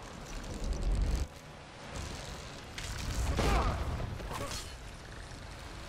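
Giant crabs click and scuttle nearby.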